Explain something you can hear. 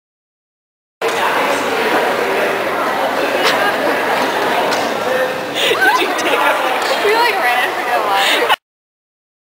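A crowd of people chatter in a busy room.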